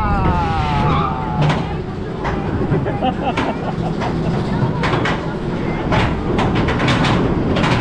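A lift chain clanks rapidly as a roller coaster train climbs.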